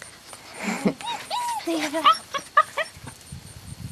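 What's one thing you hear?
A puppy yelps and whines in short, high cries.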